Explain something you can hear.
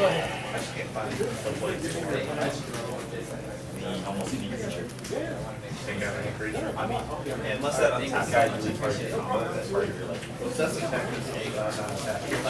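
Playing cards shuffle softly between hands.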